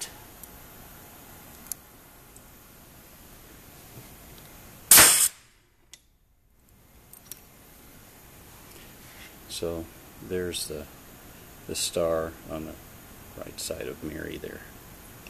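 Small metal parts click as hands handle a tool.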